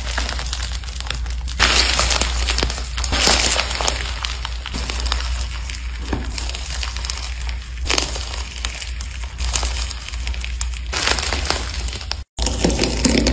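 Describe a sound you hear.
Hands squeeze and tear a crumbly dough, which crackles and crunches.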